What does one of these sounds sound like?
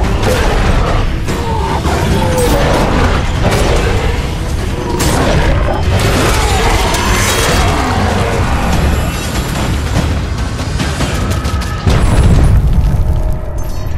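Heavy blows thud on flesh.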